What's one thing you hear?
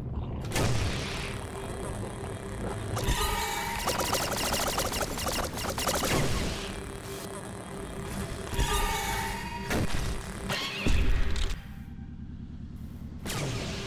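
Laser blasts zap and crackle in a game.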